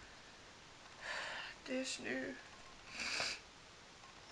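A young woman sighs heavily.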